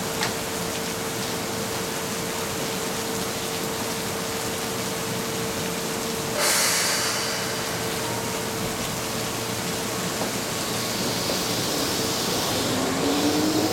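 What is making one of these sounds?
An electric train rolls slowly along the rails.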